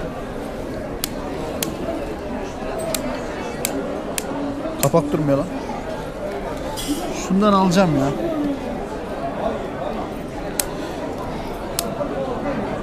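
An earbud case lid snaps open and shut with sharp clicks.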